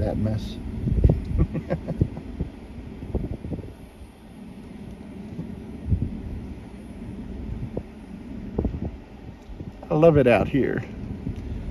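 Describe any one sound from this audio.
Tall grass rustles in the wind.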